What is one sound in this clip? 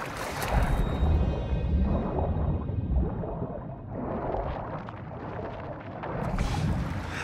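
Muffled bubbling is heard underwater.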